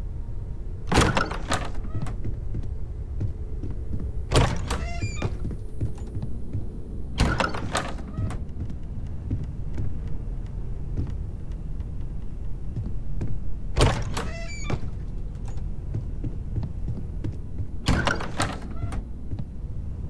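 A door unlatches and swings open several times.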